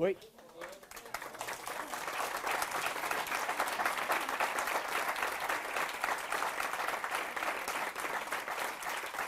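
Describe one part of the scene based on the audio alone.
An audience applauds loudly and steadily.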